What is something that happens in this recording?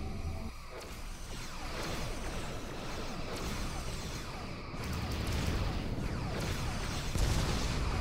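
Laser weapons fire in quick bursts.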